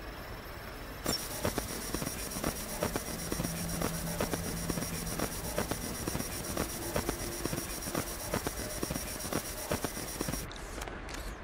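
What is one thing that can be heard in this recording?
An electronic device buzzes and crackles with static.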